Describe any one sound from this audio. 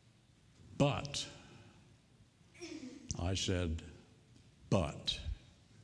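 An elderly man speaks slowly and earnestly through a microphone in a reverberant hall.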